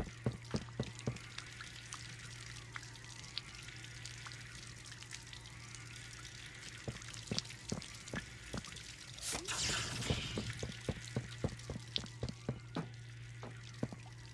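Footsteps thud steadily across a hard floor.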